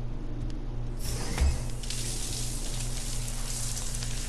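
A shower sprays water with a steady hiss.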